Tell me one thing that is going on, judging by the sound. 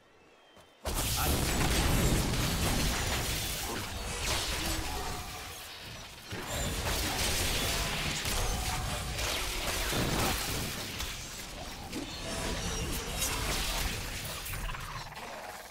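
Magic spells crackle and blast in a game battle.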